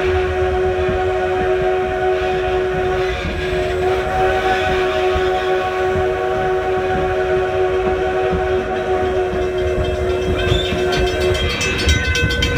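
A steam train whistle blows in a long steady tone.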